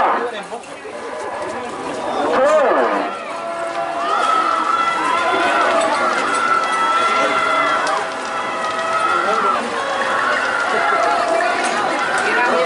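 A crowd shouts and cheers in the distance outdoors.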